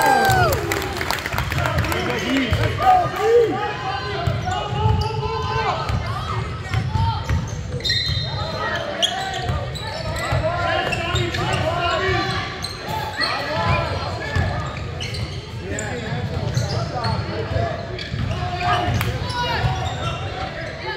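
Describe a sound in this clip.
Young players and spectators shout and call out in an echoing gym.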